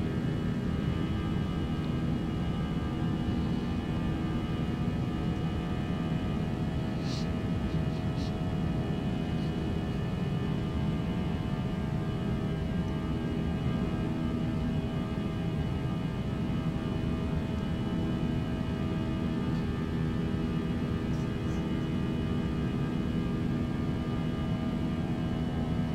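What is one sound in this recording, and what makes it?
Jet engines hum and roar steadily.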